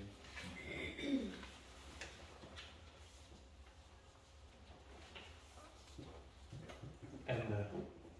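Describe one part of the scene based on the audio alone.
Paper rustles as pages are handled.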